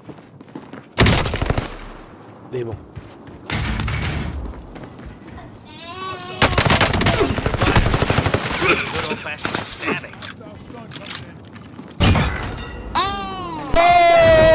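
Gunshots fire in loud rapid bursts.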